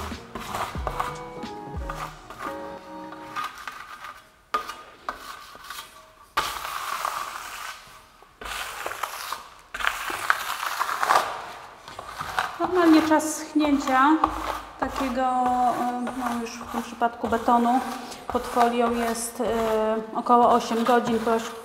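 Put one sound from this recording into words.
A trowel scrapes plaster across a wall.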